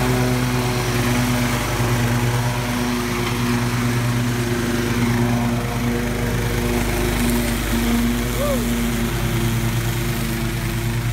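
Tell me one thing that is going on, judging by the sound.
A zero-turn riding mower runs, its blades cutting through tall grass.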